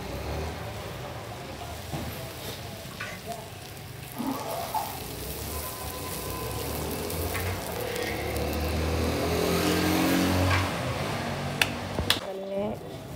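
Hot oil sizzles and bubbles steadily as dough fries.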